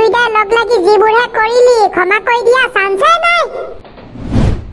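A woman speaks with animation in a high, squeaky cartoon voice.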